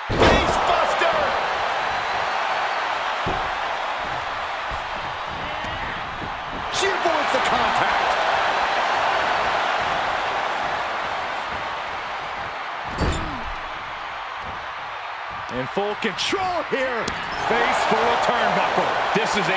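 A large crowd cheers and roars throughout.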